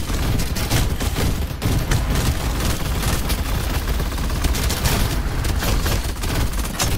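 Laser guns fire in rapid, buzzing bursts.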